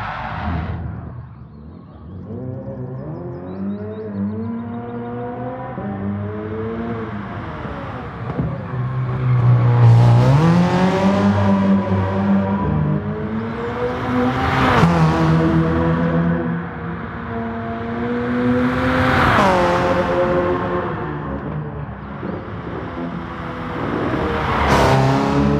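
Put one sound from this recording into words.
A hybrid prototype race car's engine roars as it passes by at speed.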